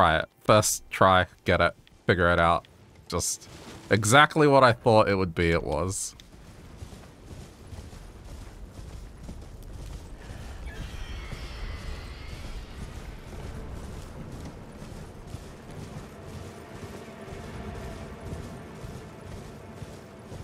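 A horse's hooves gallop steadily over the ground.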